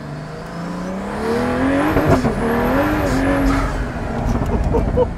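A car speeds past with a rushing whoosh.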